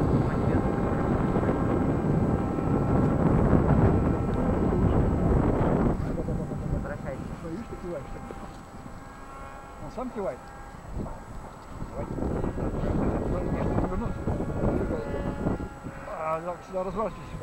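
Wind blusters across the microphone outdoors.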